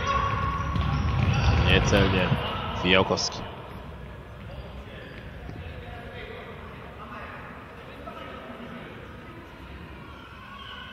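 Shoes squeak on a hard indoor floor as players run.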